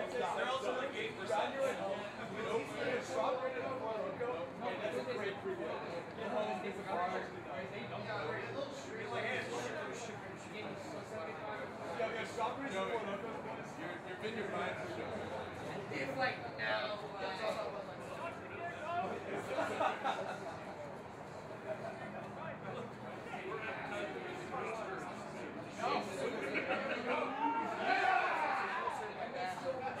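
Men talk and shout outdoors, some close and some further off.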